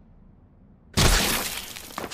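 A gunshot rings out loudly and echoes.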